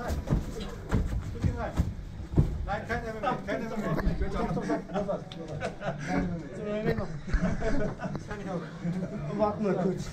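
Bodies thump and scuffle on a padded mat.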